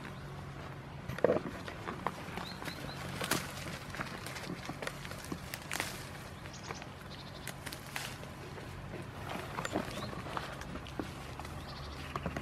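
Leaves rustle as a goat pulls at branches.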